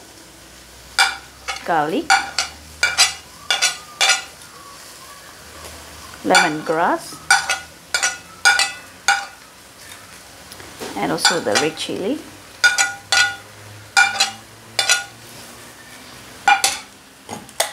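A metal spoon clinks and scrapes against a plate.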